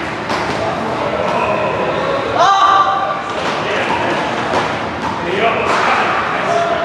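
Men talk casually in a large echoing hall.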